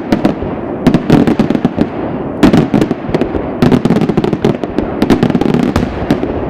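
Firework blasts boom in bursts.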